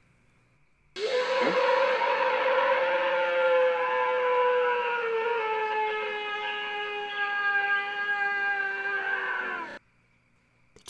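A creature lets out a long, loud howl that slowly falls in pitch.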